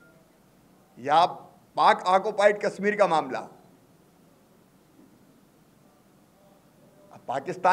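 A middle-aged man speaks emphatically into microphones, with pauses.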